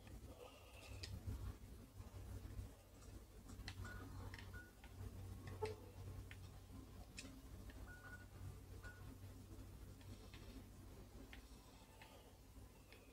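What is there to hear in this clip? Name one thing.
Short electronic menu beeps and clicks sound from a television speaker.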